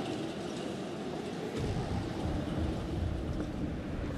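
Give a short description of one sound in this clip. Wind blows softly outdoors.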